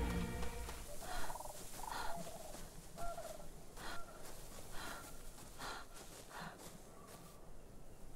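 Footsteps crunch softly on sand.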